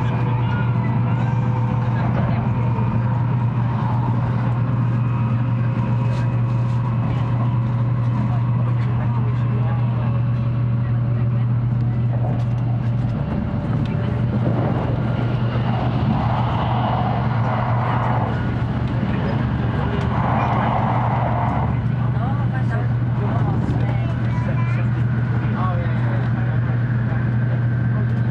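A train hums and rumbles steadily along the tracks, heard from inside a carriage.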